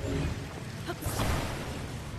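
A magical whoosh swirls loudly.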